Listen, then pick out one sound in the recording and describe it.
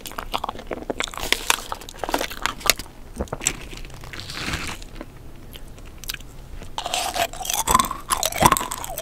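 A plastic wrapper crinkles close to a microphone.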